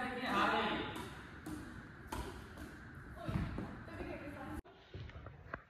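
A badminton racket strikes a shuttlecock with sharp pops.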